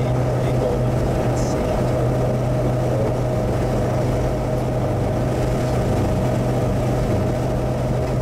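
Tyres roar steadily on the highway.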